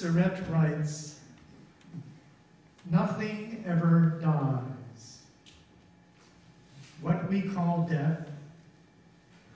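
An older man speaks calmly into a microphone, heard through a loudspeaker in an echoing room.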